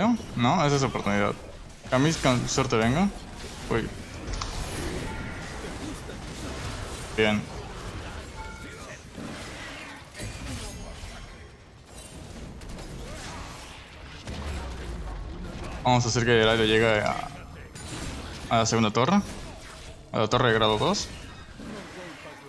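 Game combat effects whoosh and clash in a busy fight.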